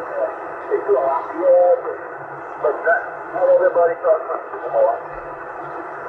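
A man's voice speaks through a radio loudspeaker, thin and crackly.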